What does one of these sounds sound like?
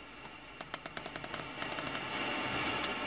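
Quick clicks sound as a finger taps a car radio's touch buttons.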